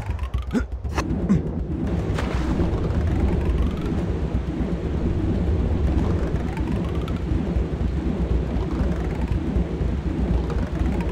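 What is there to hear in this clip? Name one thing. Rushing water roars steadily.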